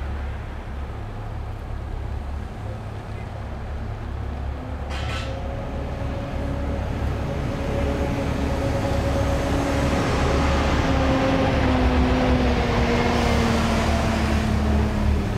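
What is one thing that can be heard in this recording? A coach's engine rumbles as it drives slowly past, growing louder.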